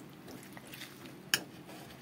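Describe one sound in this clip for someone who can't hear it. A knife cuts through a fried egg and clicks against a ceramic plate.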